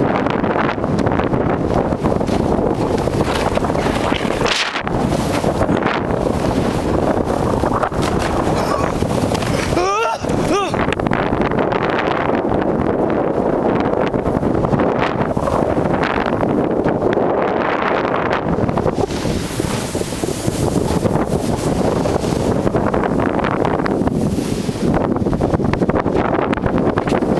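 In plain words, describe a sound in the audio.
Strong wind buffets and roars outdoors throughout.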